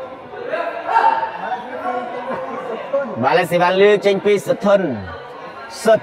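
A crowd of young men talks and calls out in a large echoing hall.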